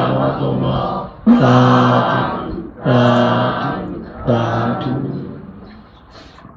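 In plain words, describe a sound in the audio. A young man chants in long, drawn-out tones close to a microphone.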